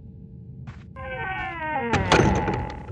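A heavy wooden door creaks as it swings shut.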